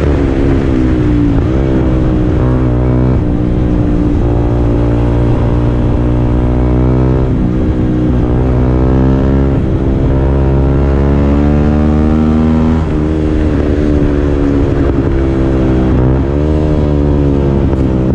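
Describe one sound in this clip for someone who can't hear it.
A motorcycle engine hums loudly up close, its pitch rising and falling as the rider shifts gears.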